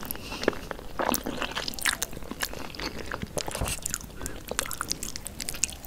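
A young woman slurps and chews noodles loudly right beside the microphone.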